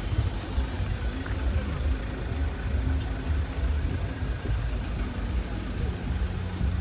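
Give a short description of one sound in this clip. A car engine hums as a car rolls slowly past close by.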